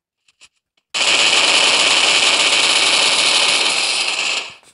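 A rifle fires in a long, rapid burst.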